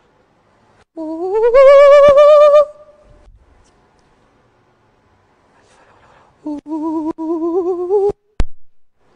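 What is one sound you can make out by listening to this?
A woman sings long, held notes through a microphone.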